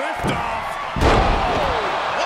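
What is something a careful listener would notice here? A heavy body slams onto a ring mat with a loud thud.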